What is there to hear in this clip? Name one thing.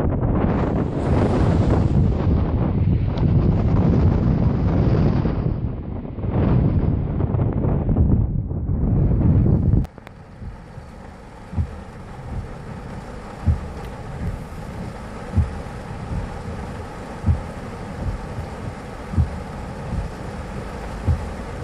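Heavy surf crashes and rumbles on the shore.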